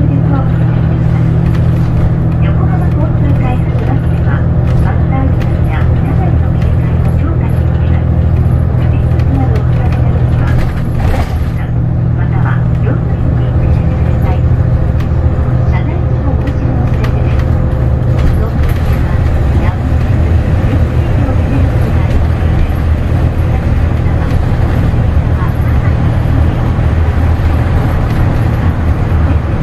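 A bus engine hums steadily from inside the cabin as the bus drives along.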